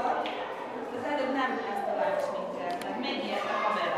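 A woman speaks cheerfully close to a microphone.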